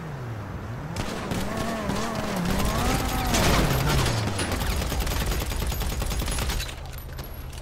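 A gun fires in rapid bursts of shots.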